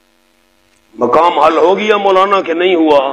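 A man speaks loudly and with animation through a microphone.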